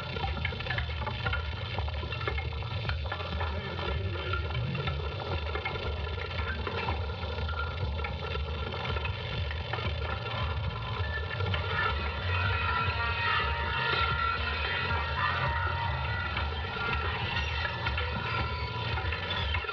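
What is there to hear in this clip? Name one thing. A woman sings softly nearby.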